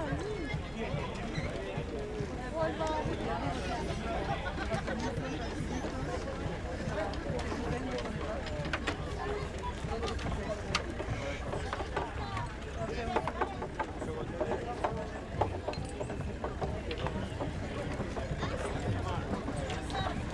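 Oxen hooves clop on the road.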